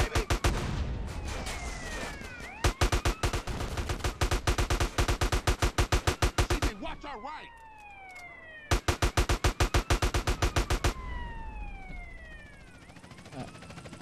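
A police siren wails and sweeps up and down.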